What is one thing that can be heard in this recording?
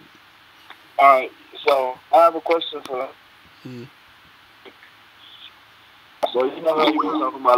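A young man talks close to a microphone, calmly and in short bursts.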